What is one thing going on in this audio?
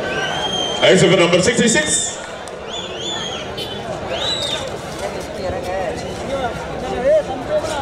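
A large crowd cheers and shouts loudly.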